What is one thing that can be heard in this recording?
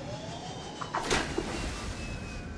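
Water splashes as a submersible dives beneath the surface.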